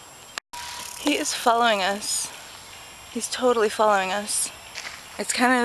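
A young woman speaks excitedly close by, with a quavering voice.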